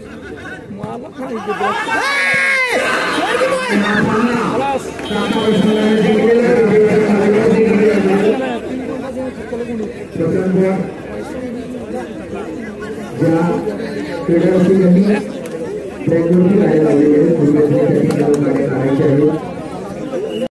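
Men shout and call out loudly outdoors during a ball game.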